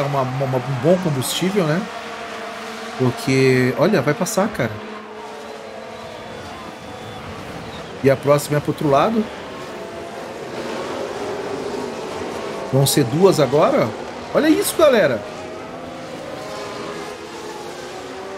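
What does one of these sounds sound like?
Racing car engines whine steadily in the background.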